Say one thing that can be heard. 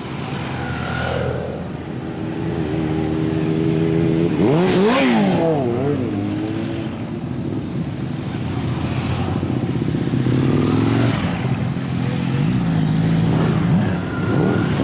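A long procession of motorcycles rides past at low speed.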